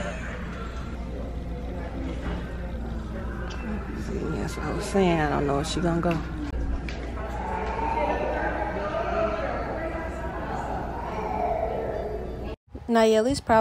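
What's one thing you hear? A woman speaks calmly to young children nearby.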